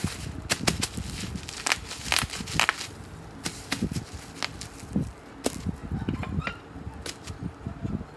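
Plastic bubble wrap crinkles as it is handled.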